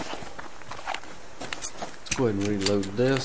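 A pistol's metal parts click as it is loaded.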